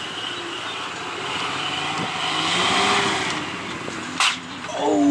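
An off-road truck engine revs hard as it climbs a steep ramp.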